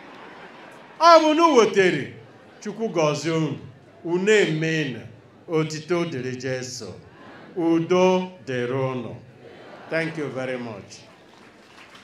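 An elderly man speaks slowly and with emphasis through a microphone and loudspeakers.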